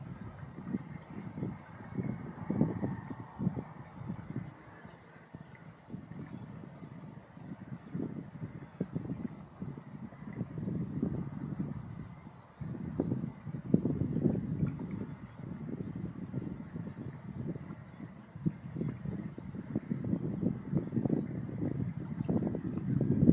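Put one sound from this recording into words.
Wind gusts into the microphone outdoors.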